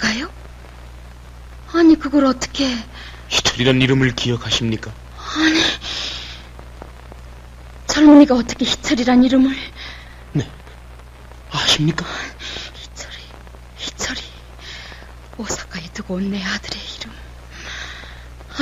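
A middle-aged woman speaks with strong emotion, close by.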